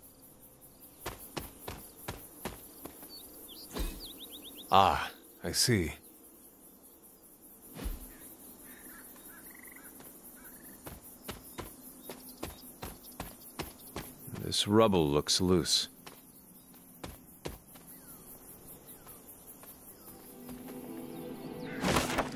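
Footsteps run quickly over earth and leaves.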